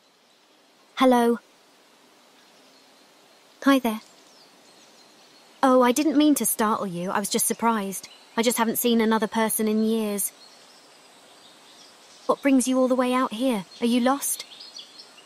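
A young woman speaks in short, playful bursts close to a microphone.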